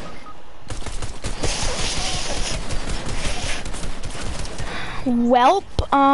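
Rapid gunshots crack in a video game.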